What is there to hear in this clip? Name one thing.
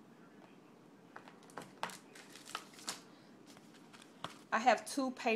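Plastic packaging crinkles and clicks as it is handled.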